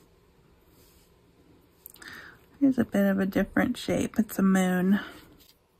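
Paper rustles softly as hands handle a tag.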